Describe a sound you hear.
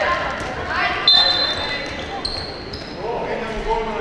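Sneakers squeak sharply on a hard court floor in an echoing hall.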